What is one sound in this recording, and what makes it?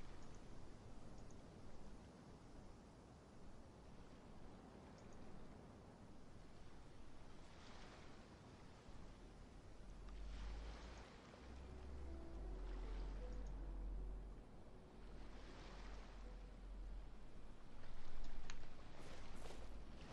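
Waves wash softly against a shore.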